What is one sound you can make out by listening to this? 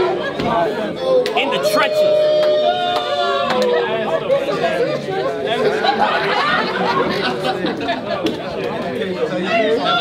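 A young man raps loudly and with animation.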